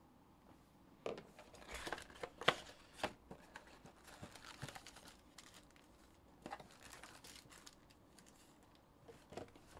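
A cardboard box rustles and scrapes as hands handle it.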